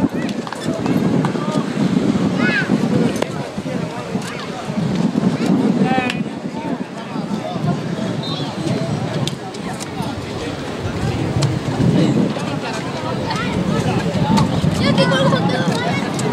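Young men shout and call out to each other outdoors.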